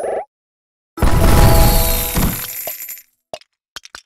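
A game blast booms with a sparkling whoosh.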